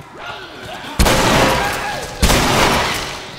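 A gun fires loud, sharp shots.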